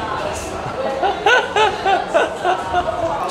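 A young man laughs in short bursts.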